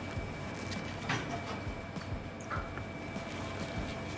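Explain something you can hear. A man chews and munches on food.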